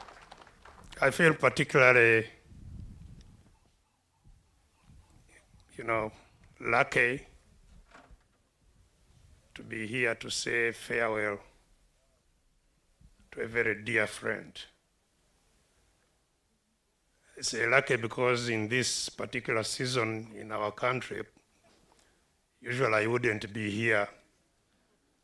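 A man speaks slowly and calmly into a microphone, with long pauses.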